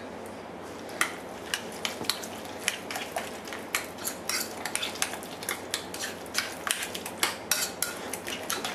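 A fork clicks and scrapes against a ceramic bowl while stirring.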